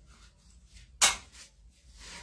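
A glass cup clicks sharply once as it is pressed onto skin.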